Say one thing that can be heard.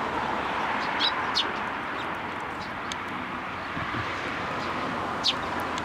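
A small bird chirps in short, sharp calls.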